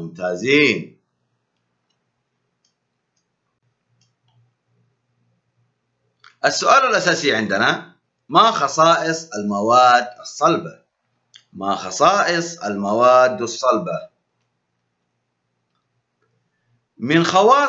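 A man speaks calmly and clearly into a microphone, pausing between phrases.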